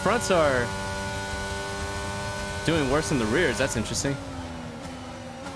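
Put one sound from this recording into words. A racing car engine whines at high revs, rising and dropping in pitch as it shifts gears.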